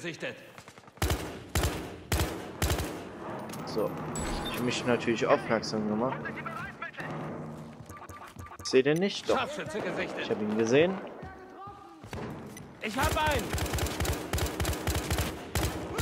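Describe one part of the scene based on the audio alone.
An automatic rifle fires short bursts of rapid shots.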